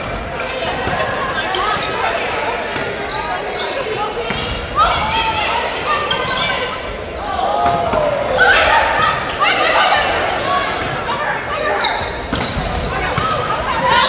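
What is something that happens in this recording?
Sneakers squeak on the wooden court.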